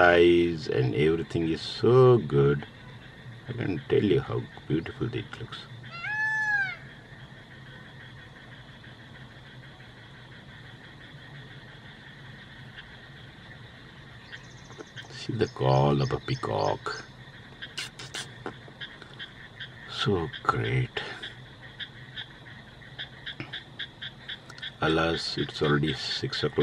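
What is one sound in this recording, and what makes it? A peacock calls loudly nearby.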